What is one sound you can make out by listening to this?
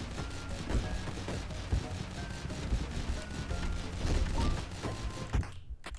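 Video game sound effects of shots and hits play in quick bursts.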